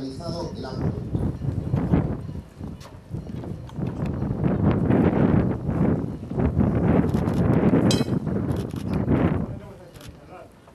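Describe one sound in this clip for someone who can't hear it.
Wind blows in strong gusts outdoors.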